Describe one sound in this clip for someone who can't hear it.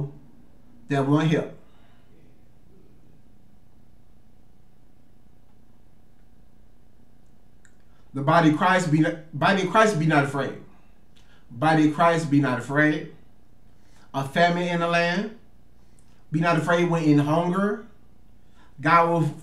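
A man reads aloud in short, clear phrases close to a microphone, with pauses between them.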